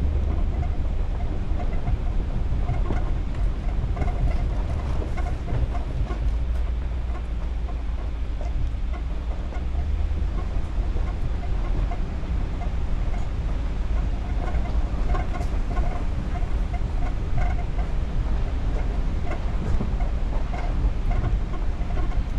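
A car engine rumbles steadily at low speed.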